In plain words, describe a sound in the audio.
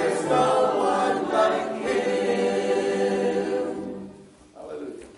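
A small group of men and women sing together in a room with a slight echo, then the singing fades.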